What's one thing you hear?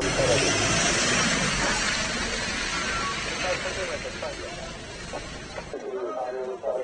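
A vehicle engine rumbles as it drives off.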